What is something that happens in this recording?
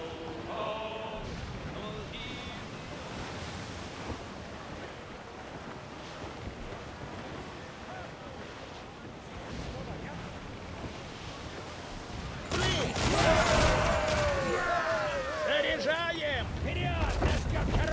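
Waves crash and rush against a ship's hull.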